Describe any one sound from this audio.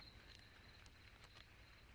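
A brush strokes softly across paper.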